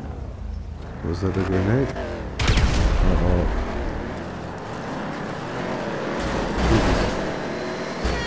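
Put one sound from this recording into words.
Tyres screech on the track.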